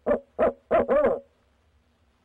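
An owl hoots loudly and close by in a quick series of calls.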